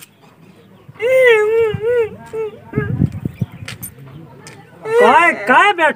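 A young man wails loudly in distress, close by.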